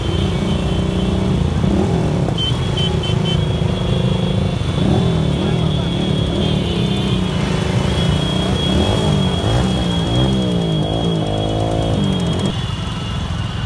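A motorcycle engine close by revs up and down.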